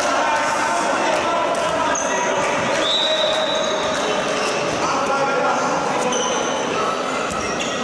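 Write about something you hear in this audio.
A handball bounces on a hard indoor court.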